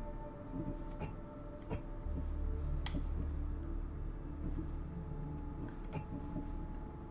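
Soft clicks sound now and then.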